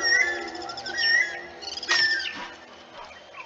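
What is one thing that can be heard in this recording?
A bird calls overhead with shrill, rising cries.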